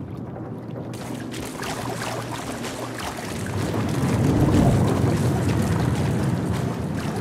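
Footsteps splash through shallow water in a large echoing space.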